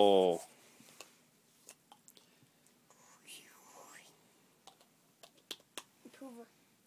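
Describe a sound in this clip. Small plastic toys click and knock.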